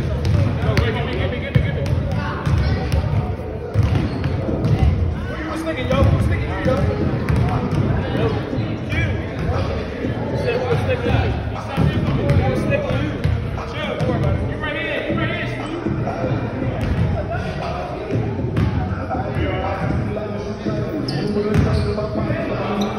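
Basketballs bounce on a wooden floor in a large echoing gym.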